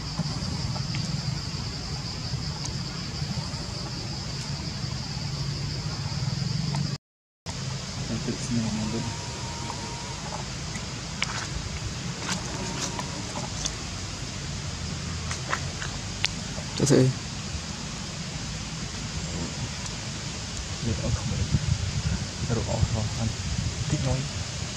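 A monkey chews and smacks on food close by.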